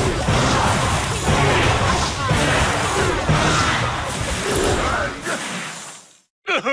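Video game battle effects clash and crackle busily.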